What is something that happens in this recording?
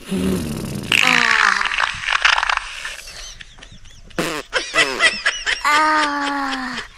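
A young girl talks playfully and animatedly close by.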